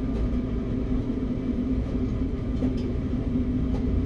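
Train wheels roll over the rails as the train pulls away.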